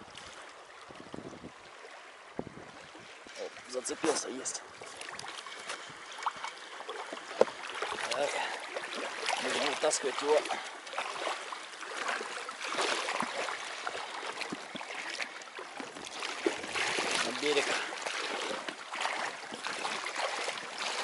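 A stream flows and gurgles close by.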